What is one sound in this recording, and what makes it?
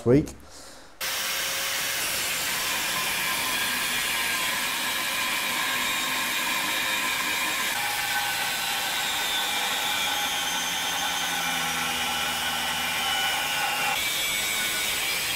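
An angle grinder whines steadily as it cuts through metal.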